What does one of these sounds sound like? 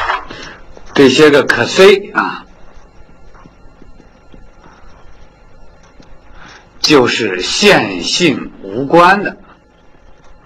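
A man speaks calmly, as if lecturing.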